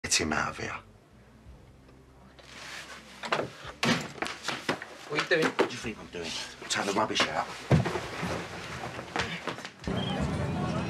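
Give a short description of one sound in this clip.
A man speaks sharply and close by.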